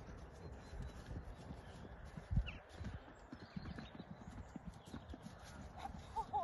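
A horse canters on grass in the distance.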